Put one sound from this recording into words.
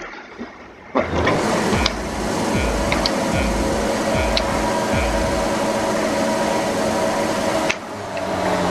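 A racing car engine revs loudly while standing still.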